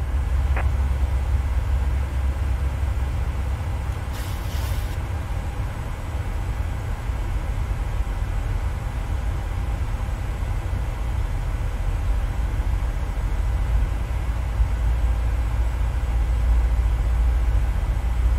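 Jet engines drone with a steady low rumble.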